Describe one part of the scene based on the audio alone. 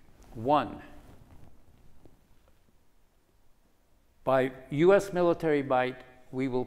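An elderly man speaks calmly and deliberately through a microphone, pausing between phrases.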